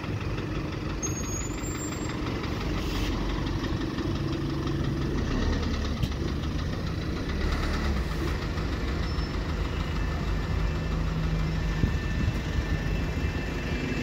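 A bus engine rumbles steadily nearby as the bus pulls away.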